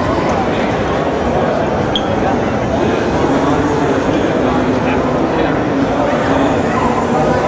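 A large crowd chatters loudly all around in a big echoing hall.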